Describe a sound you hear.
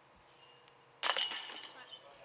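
A flying disc crashes into metal chains, which jangle.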